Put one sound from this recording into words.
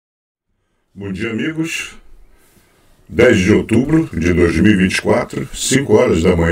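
An elderly man talks calmly and steadily into a close microphone.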